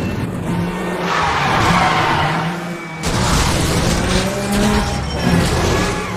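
Tyres skid and hiss on a wet road.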